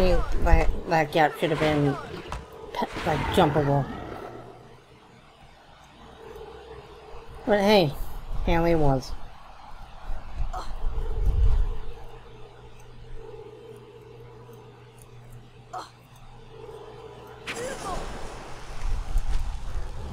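A magic spell crackles and whooshes repeatedly.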